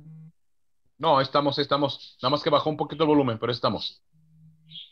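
A man speaks with animation over an online call.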